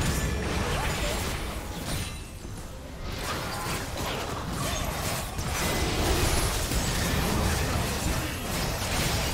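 Magic spell blasts whoosh and crackle in a chaotic video game battle.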